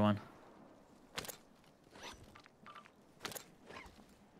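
Footsteps crunch on rocky ground.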